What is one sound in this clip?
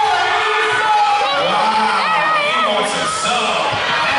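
A crowd of children cheers and shouts.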